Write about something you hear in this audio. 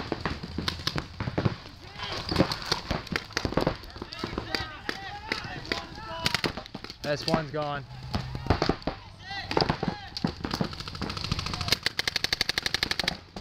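A paintball gun fires rapid bursts of sharp pops close by.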